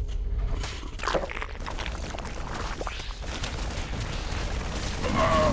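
Laser blasts and explosions crackle in a battle.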